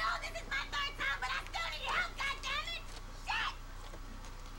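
A young woman speaks quickly and with animation.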